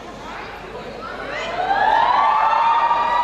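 A marching band's brass horns blast a loud, rising chord.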